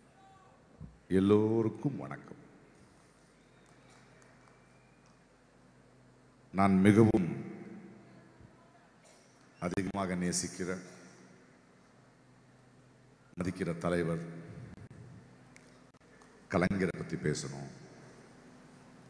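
A middle-aged man speaks into a microphone over loudspeakers in short bursts with pauses.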